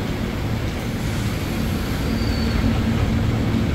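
Train doors slide shut.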